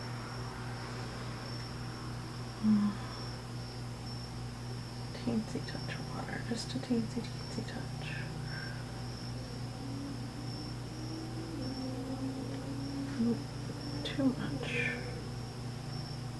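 A paintbrush lightly strokes paper.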